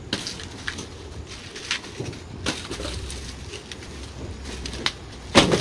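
Hard fruit clicks and rustles in a man's hands.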